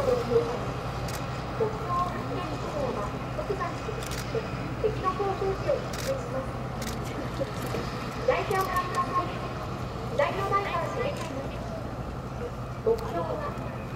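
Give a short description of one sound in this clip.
Tank tracks clatter over wet ground.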